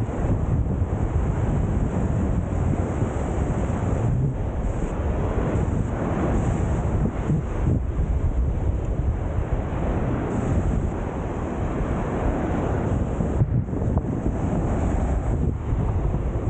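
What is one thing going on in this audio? A young man talks to the microphone up close.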